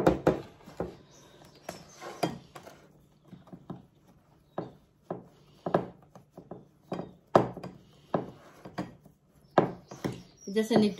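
Fingers press and pat crumbly dough into a metal baking pan, with soft dull knocks.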